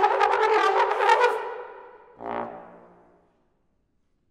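A trombone plays loud, bright notes and rings out in a large echoing hall.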